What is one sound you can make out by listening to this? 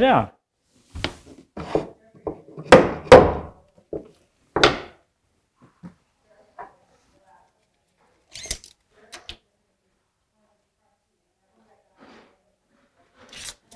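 A man knocks and taps on a wooden cabinet close by.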